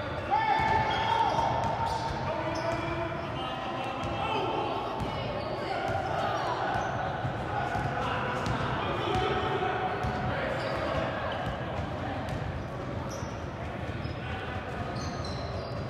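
A crowd of spectators chatters in an echoing gym.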